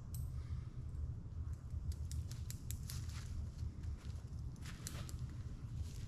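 A stuff sack crinkles and rustles in a man's hands.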